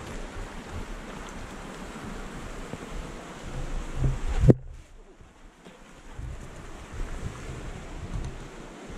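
A mountain stream rushes over rocks.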